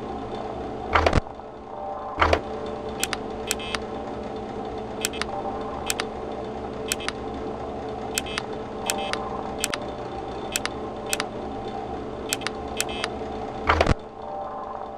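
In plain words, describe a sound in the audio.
A security monitor flips up with a clatter.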